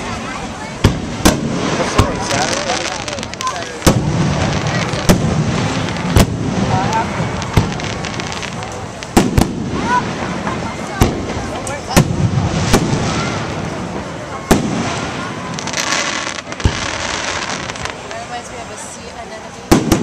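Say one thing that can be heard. Fireworks bang and crackle loudly overhead, one burst after another.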